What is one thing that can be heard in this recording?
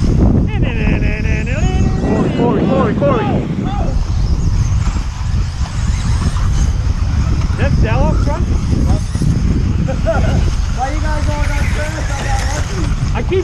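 Small electric model cars whine as they race over a dirt track.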